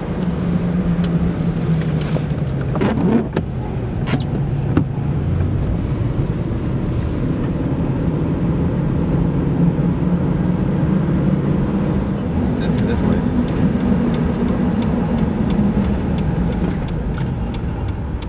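Tyres roll over a wet road.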